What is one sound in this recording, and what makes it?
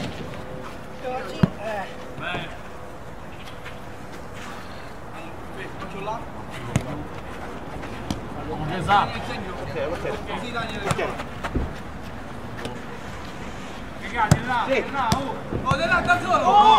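Young men shout and call out across an outdoor pitch.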